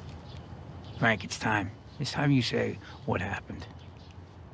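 A man speaks calmly and firmly up close.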